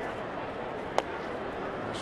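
A baseball pops into a catcher's mitt.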